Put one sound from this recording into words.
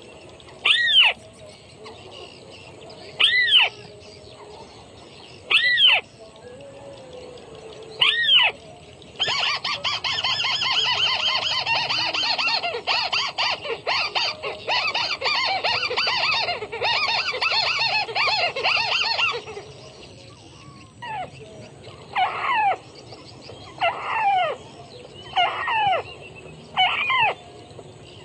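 A small bird gives loud, rising whistled calls at intervals, close by.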